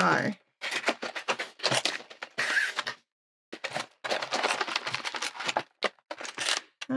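A cardboard box rustles and scrapes as hands handle it.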